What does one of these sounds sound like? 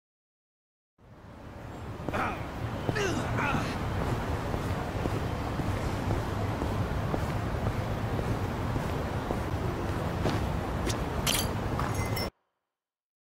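A low city street hum rumbles steadily.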